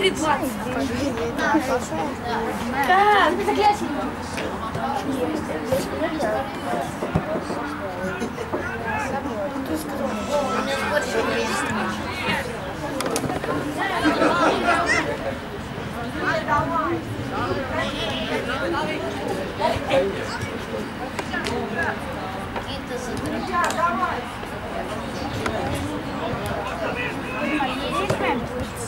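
Adult spectators chat close by outdoors.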